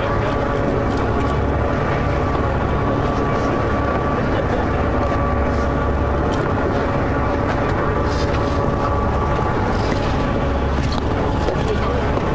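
Boat engines rumble loudly and steadily.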